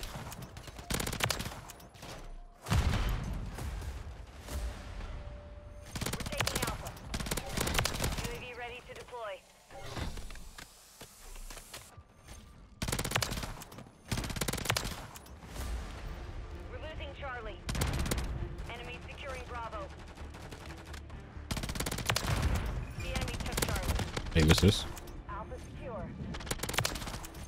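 Gunfire bursts out in rapid loud volleys.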